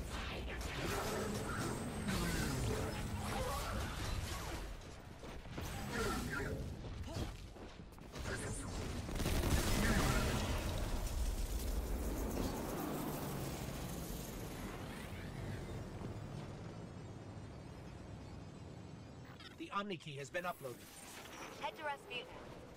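Gunfire crackles and booms in a video game.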